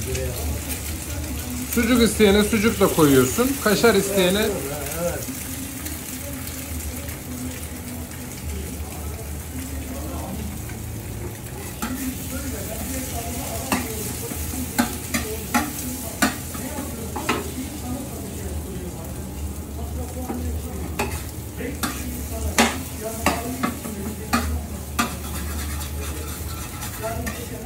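Eggs sizzle on a hot griddle.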